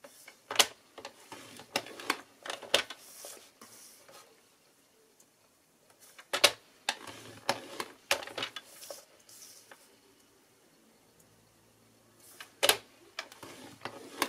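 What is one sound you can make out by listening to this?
A paper trimmer blade slides along its rail, slicing through paper.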